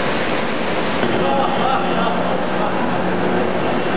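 A man talks nearby over the machinery noise.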